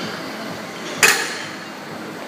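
Metal weight plates clank as a barbell is set down.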